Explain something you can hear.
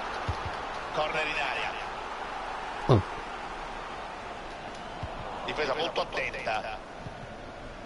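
A young man speaks into a microphone with animation, close by.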